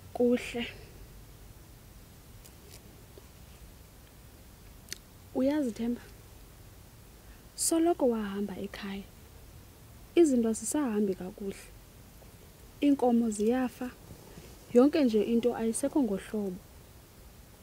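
A young woman sings nearby in short melodic phrases.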